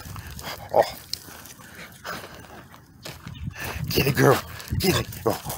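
A dog's paws rustle over dry grass and dirt.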